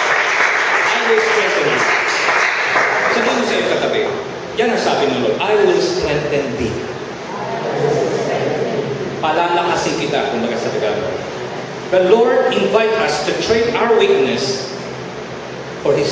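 A middle-aged man speaks with animation into a microphone, heard through a loudspeaker.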